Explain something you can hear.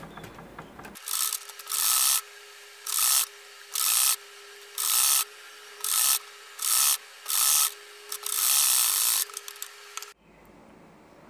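A sewing machine stitches in short, rapid bursts.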